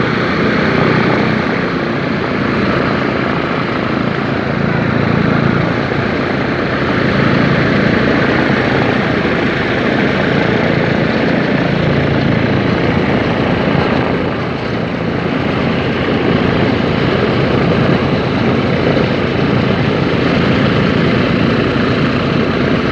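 Several propeller engines of a large aircraft roar loudly and steadily, close by.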